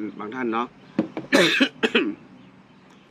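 A young man coughs into his fist.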